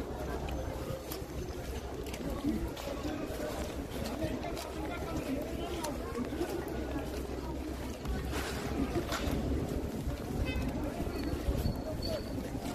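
Shoes crunch on a dirt path as a person walks.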